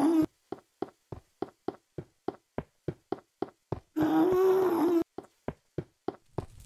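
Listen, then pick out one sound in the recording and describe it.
Footsteps crunch steadily on rough stone.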